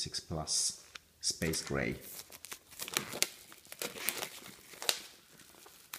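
A cardboard box scrapes and taps as it is handled.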